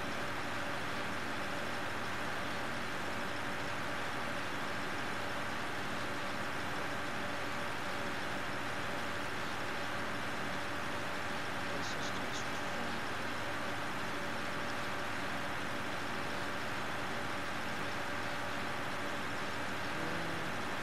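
A tractor engine hums steadily.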